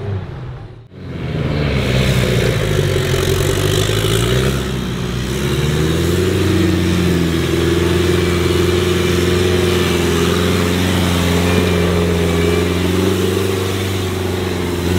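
A large engine rumbles loudly and steadily close by.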